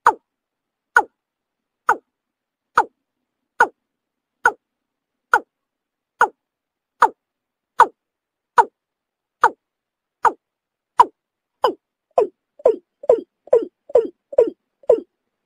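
A bird calls with short, sharp clucks at an even pace, quickening near the end.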